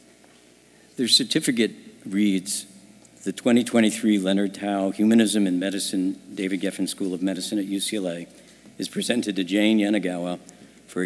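A man speaks calmly through a microphone and loudspeakers in a large hall.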